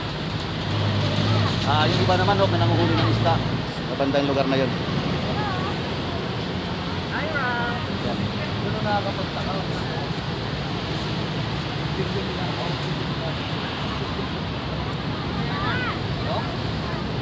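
A man talks close by, outdoors.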